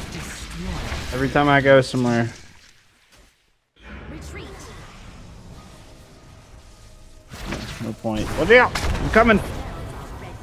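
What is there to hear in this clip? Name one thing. Magic blasts and weapon hits crackle in a busy fight.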